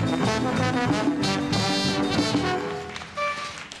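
A band plays lively music.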